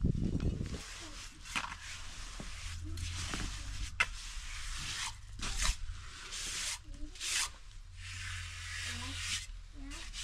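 A pickaxe strikes and scrapes into dry soil.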